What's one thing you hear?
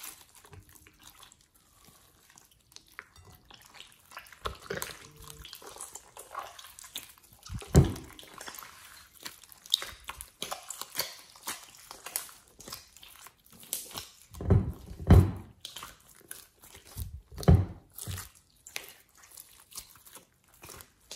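Sticky slime squishes, squelches and pops.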